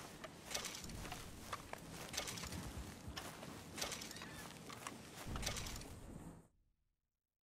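Footsteps swish through tall grass.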